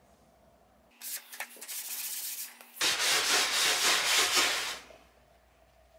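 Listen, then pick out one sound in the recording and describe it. A cloth rubs and wipes across a wooden board.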